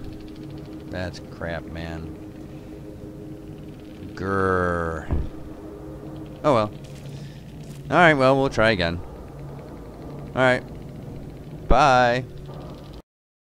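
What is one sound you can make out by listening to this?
A man talks into a microphone with animation, close up.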